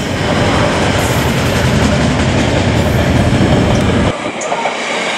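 A freight train rumbles past loudly.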